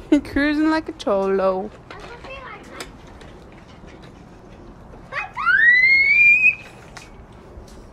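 Small bicycle training wheels rattle and roll over concrete.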